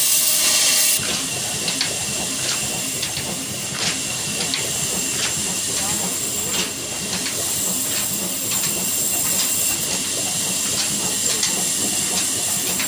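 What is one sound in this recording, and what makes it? A belt-driven machine rumbles and clatters with sharp ticks.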